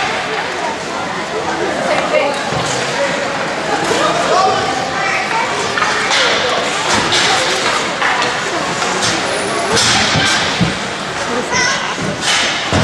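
Young players shout and talk to each other in a large echoing rink.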